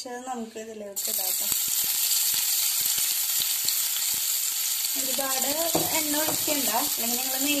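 Chopped onions sizzle loudly in hot oil.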